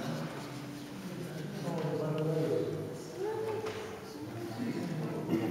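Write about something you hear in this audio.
A small string orchestra plays.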